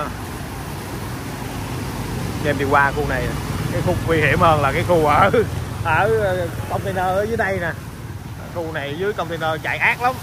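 Water splashes and swishes around moving tyres.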